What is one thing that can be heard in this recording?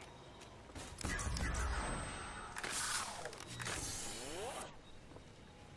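A futuristic gun fires with sharp, whooshing electronic zaps.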